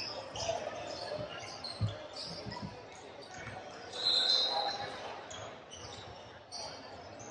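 Young men call out to one another in an echoing gym.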